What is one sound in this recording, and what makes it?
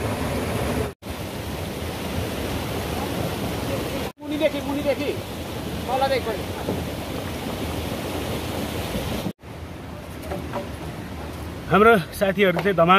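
Water sloshes around feet wading in a stream.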